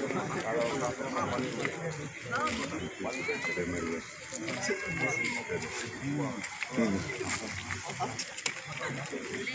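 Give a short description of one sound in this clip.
Several men talk at once outdoors, close by and in the distance.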